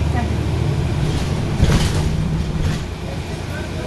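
A bus rattles and clatters over the road.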